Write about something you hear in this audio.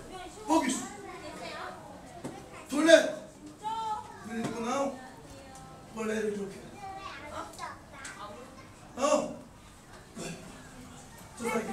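A man calls out commands loudly in an echoing room.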